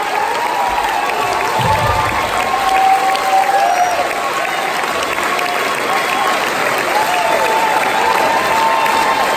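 Audience members whistle loudly.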